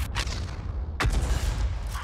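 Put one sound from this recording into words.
A tank gun fires with a heavy boom.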